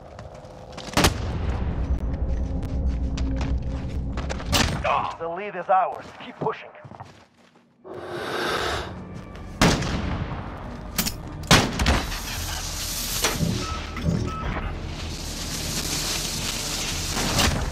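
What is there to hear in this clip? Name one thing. Loud explosions boom and echo.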